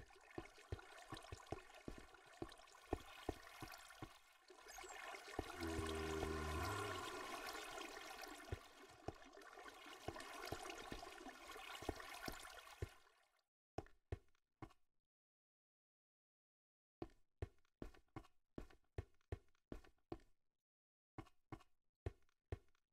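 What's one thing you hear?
Footsteps tap on stone at a steady walking pace.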